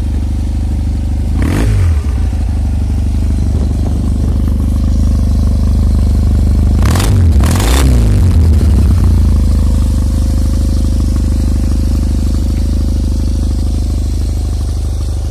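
A motorcycle engine idles steadily with a low, even rumble close by.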